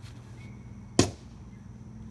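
A beanbag thuds onto a wooden board.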